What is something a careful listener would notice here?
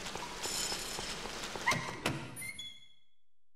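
Footsteps run across a hard floor.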